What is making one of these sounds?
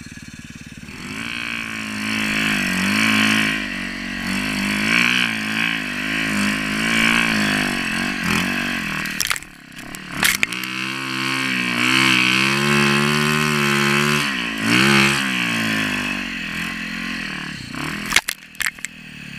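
A motorbike engine revs hard close by, rising and falling in pitch.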